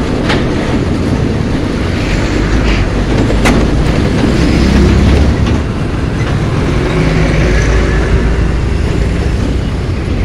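Heavy trucks rumble and idle in slow traffic close by.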